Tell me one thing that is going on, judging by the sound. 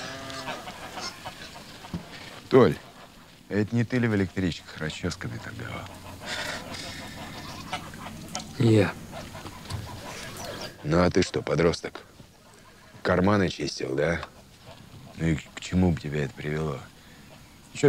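Men talk to one another nearby, outdoors, in calm voices.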